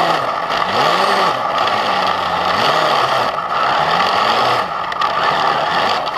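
A snowmobile engine roars close by, its pitch rising and falling.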